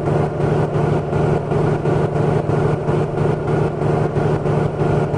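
A truck engine rumbles steadily with a low, pulsing drone.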